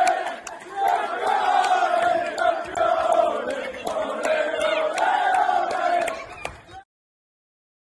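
Hands clap in celebration.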